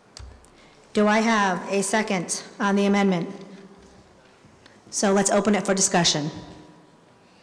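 A woman speaks into a microphone, heard through a loudspeaker in an echoing hall.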